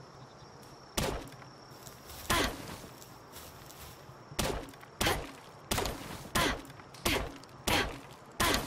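An axe chops into a tree trunk with heavy thuds.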